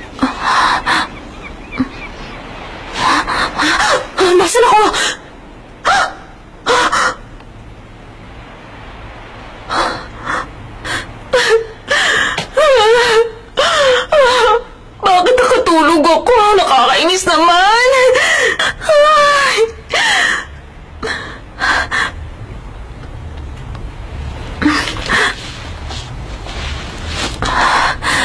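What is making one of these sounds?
A young woman speaks in a startled, anxious voice.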